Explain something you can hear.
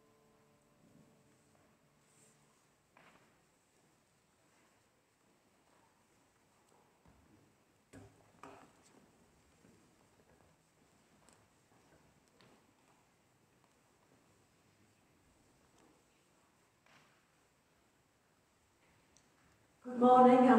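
An older woman reads aloud calmly in a large echoing hall.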